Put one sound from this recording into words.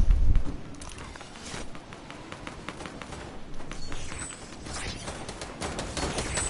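Wind rushes past as a figure glides down through the air.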